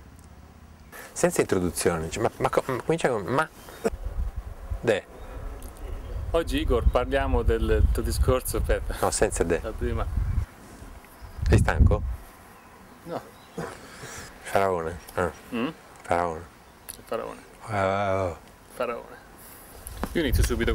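A younger man asks questions calmly, heard close through a microphone.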